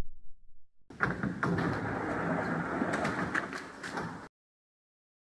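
Train doors slide open.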